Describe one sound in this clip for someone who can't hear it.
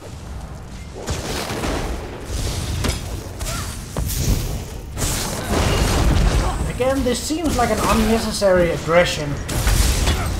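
Lightning crackles and booms loudly.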